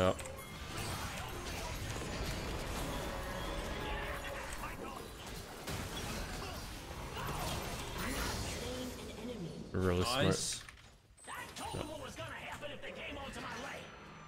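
Video game combat sounds clash and burst with spell effects.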